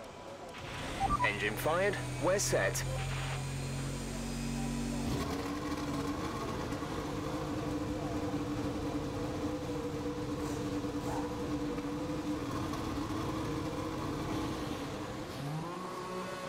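A racing car engine starts up and idles with a steady hum.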